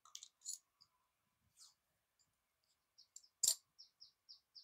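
Scissors snip through tape.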